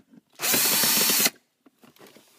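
A cordless drill whirs briefly.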